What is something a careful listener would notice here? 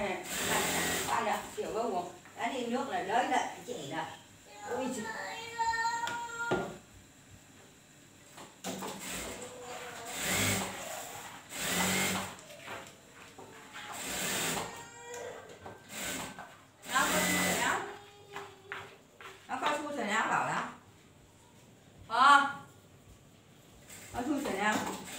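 A sewing machine whirs in short bursts.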